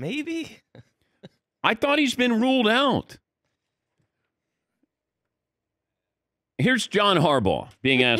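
A middle-aged man talks with animation into a close microphone, with pauses of silence between.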